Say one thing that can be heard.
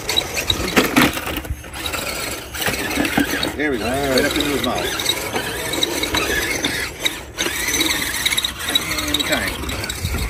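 A small electric motor whines as a toy truck drives.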